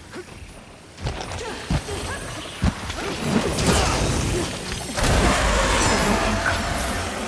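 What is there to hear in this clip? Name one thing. A blade slashes and strikes with sharp impacts.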